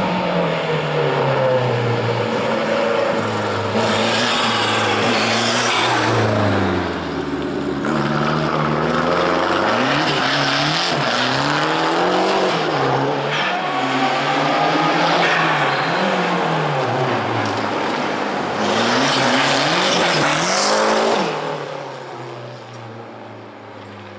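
A rally car engine roars and revs hard up and down, then fades into the distance.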